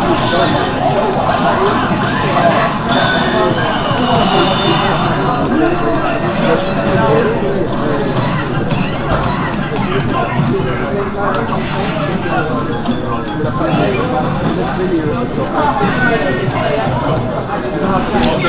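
Fighting game punches and kicks thud and smack through a speaker.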